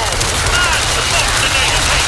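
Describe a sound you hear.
A chainsaw revs loudly.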